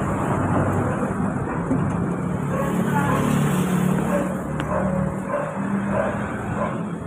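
A motorbike passes close by.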